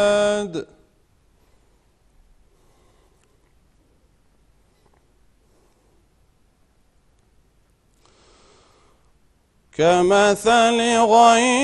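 A middle-aged man chants in a long, melodic voice, close to a microphone.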